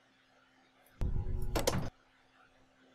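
A lift button is pressed with a short burst of sound.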